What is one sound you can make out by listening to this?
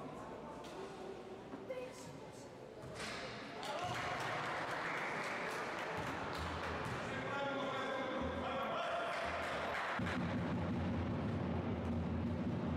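Spectators murmur and call out in the hall.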